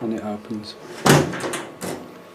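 A cabinet lid swings open with a knock.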